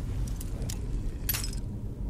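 A lock clicks and scrapes as it is picked.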